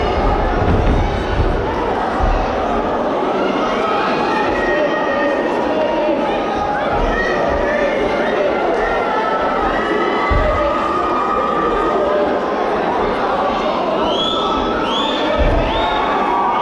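Bodies thump onto a padded mat.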